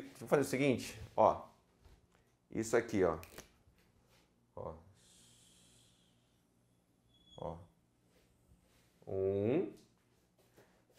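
A man speaks calmly and clearly, lecturing nearby.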